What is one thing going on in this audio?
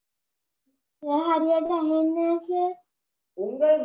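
A young girl speaks slowly over an online call.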